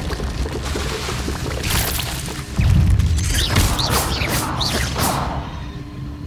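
Magic spells crackle and burst in quick bursts.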